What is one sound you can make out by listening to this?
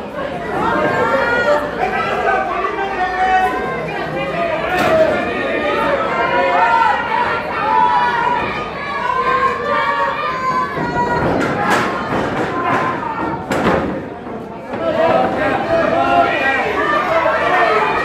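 A wrestler's body slams onto a ring mat with a heavy thud.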